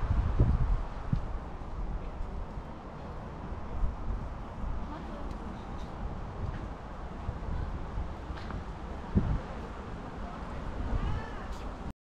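Wind rumbles across an open outdoor space.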